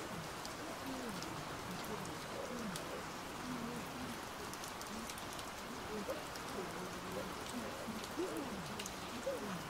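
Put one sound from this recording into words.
A man talks quietly into a microphone nearby.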